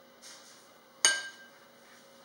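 A spoon clinks against a metal tray.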